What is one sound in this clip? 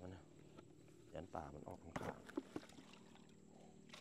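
Water splashes as a bucket is emptied.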